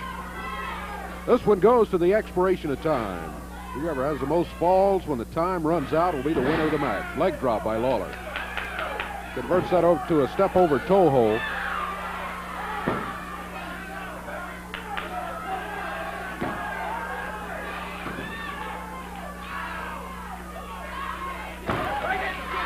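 A crowd murmurs and calls out in a large hall.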